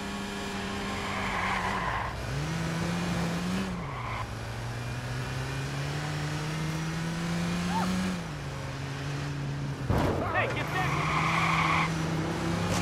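Tyres screech on pavement as a car slides through turns.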